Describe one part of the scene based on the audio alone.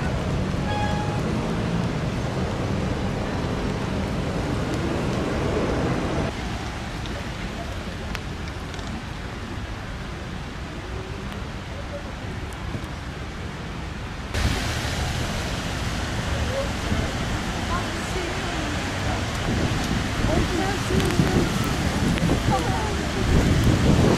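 Rain patters steadily on wet pavement outdoors.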